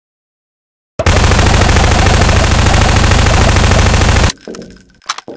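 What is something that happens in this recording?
A submachine gun fires a rapid, deafening burst.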